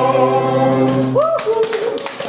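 A choir sings a final chord with piano.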